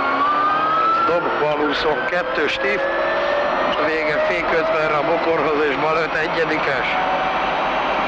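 A man reads out directions quickly over the engine noise.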